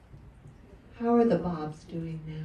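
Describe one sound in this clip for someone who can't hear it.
A young woman speaks calmly through a microphone in a large room.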